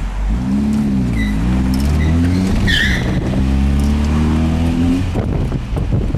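A car engine hums and revs while driving.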